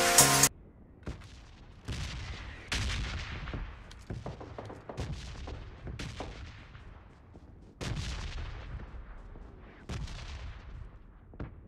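Footsteps thud on grass at a run.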